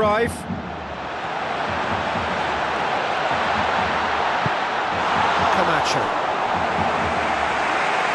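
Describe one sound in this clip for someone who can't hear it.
A large crowd roars steadily in a stadium.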